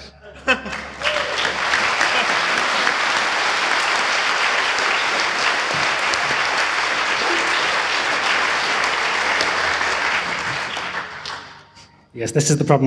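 Applause rings out steadily, then fades away.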